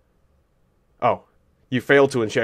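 A man speaks close to a microphone, in short bursts.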